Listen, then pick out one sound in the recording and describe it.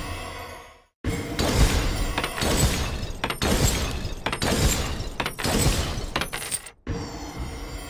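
Magic spells zap and blast in quick bursts.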